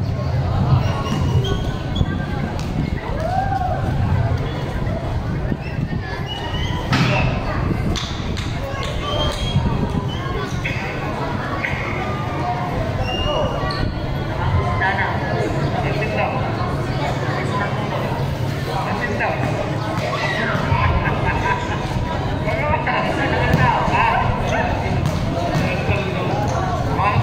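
A large crowd chatters and cheers nearby, outdoors.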